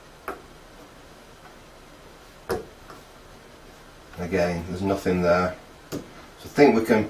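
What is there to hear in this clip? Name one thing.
Small plastic parts click as a man handles a cable plug.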